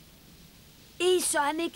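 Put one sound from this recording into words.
A high-pitched child's voice speaks excitedly.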